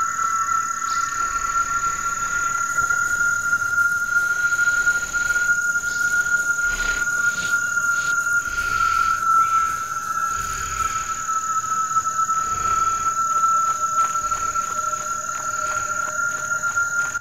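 Footsteps patter steadily on dirt.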